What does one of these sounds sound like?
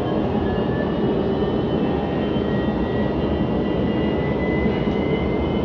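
A train rumbles steadily along an elevated track, heard from inside the carriage.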